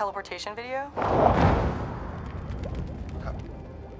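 A fiery blast roars and then dies away.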